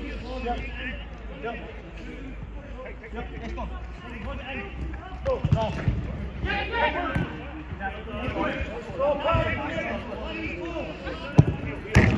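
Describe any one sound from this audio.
Several men shout and call out to each other across an open pitch outdoors.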